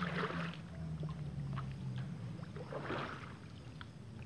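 A net slaps onto the water.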